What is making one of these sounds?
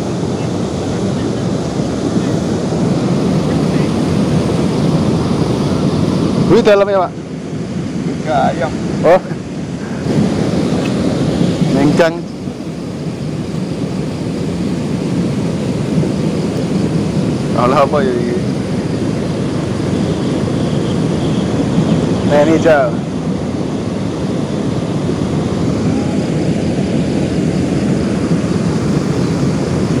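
Muddy water flows steadily through a channel.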